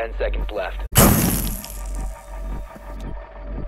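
Loud electronic static crackles and hisses briefly.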